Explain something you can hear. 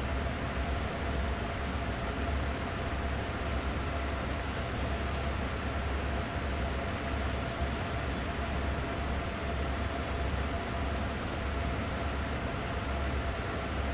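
Train wheels clatter on the rails.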